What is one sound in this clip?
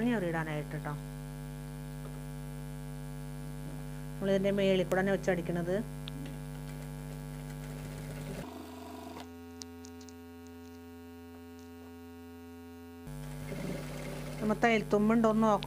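A sewing machine runs and stitches fabric.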